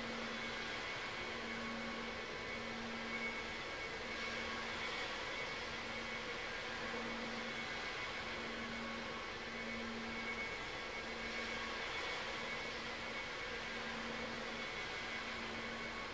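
A jet airliner's engines hum and whine steadily as it taxis.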